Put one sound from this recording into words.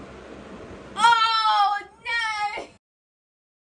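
A young woman exclaims loudly with excitement.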